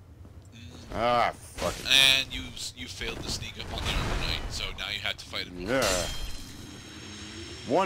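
A sword strikes armour with a metallic clash.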